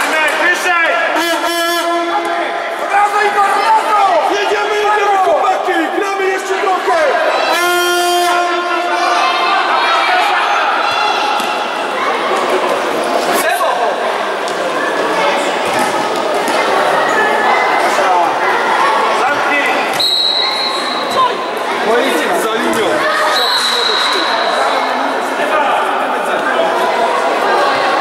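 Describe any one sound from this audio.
Spectators chatter in the background.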